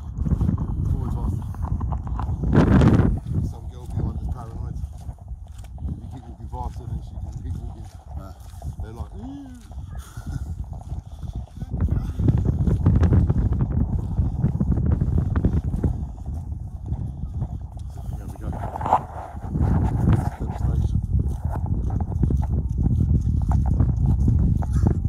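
Strong wind rumbles and buffets the microphone outdoors.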